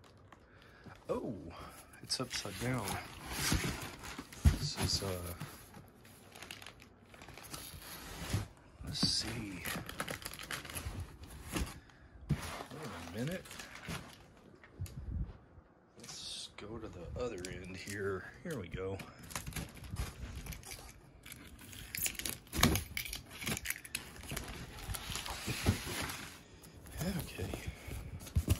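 Cardboard rustles and scrapes as hands handle a box.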